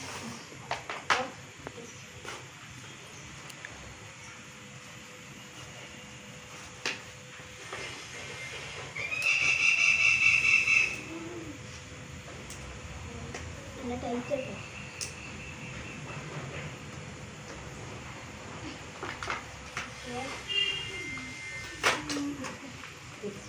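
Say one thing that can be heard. Paper and cardboard rustle and tap on the floor.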